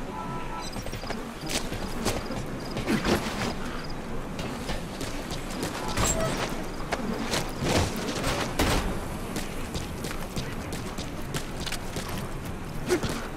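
Footsteps scuff and thud on a hard floor.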